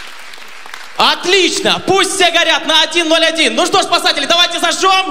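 A young man sings loudly into a microphone, heard through loudspeakers.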